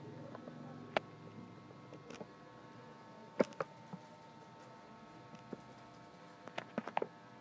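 Fingers tap on a laptop keyboard in scattered clicks.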